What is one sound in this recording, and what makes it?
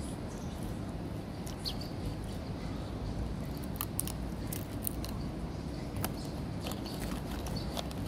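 Footsteps scuff on paving close by.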